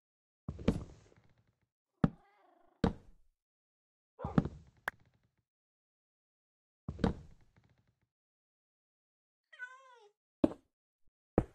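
Wooden blocks land with hollow knocks.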